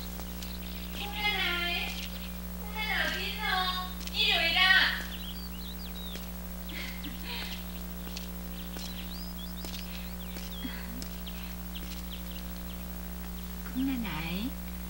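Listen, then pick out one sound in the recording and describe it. A woman speaks brightly nearby.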